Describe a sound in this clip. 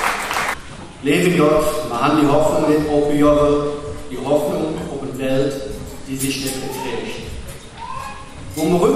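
A middle-aged man speaks calmly into a microphone over loudspeakers.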